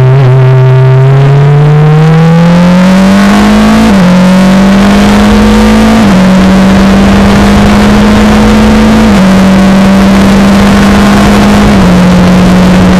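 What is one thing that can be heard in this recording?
A Formula Renault racing engine shifts up through the gears as it accelerates.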